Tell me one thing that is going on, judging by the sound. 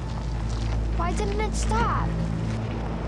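A young girl speaks tearfully.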